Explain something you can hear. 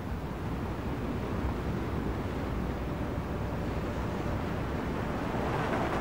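Surf crashes against rocks.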